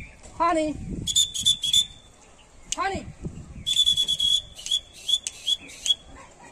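Birds chirp loudly nearby in repeated bursts.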